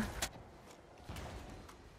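Footsteps crunch softly on an overgrown path.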